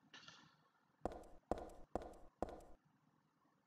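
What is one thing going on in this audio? Footsteps clack on a hard floor.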